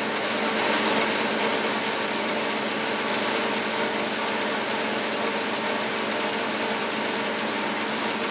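A cutting tool scrapes and hisses against turning metal.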